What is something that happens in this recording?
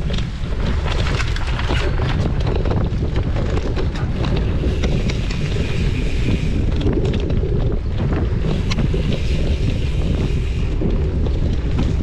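Knobby bike tyres roll and crunch over a dirt trail.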